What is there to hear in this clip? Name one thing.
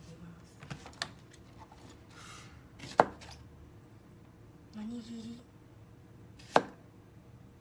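A knife chops onto a cutting board with sharp knocks.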